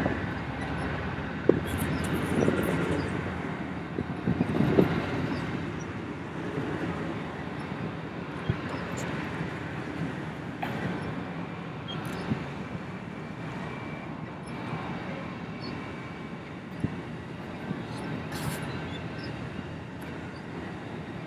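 A passenger train rolls past, its wheels clattering on the rails.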